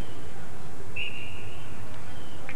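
A referee's whistle blows a short blast.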